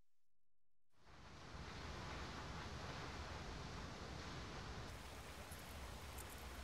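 Water rushes steadily.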